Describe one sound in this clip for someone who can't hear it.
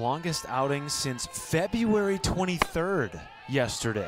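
A softball pops into a catcher's mitt.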